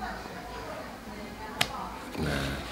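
A rubber stamp presses down onto paper with a soft thump.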